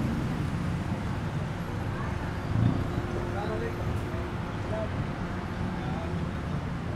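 City traffic hums nearby.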